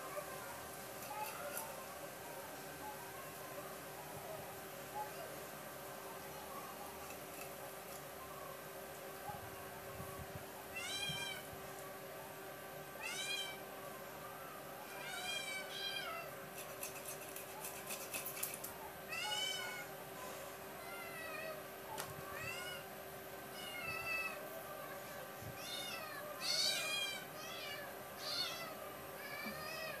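A whole fish scrapes and slices against a fixed curved blade.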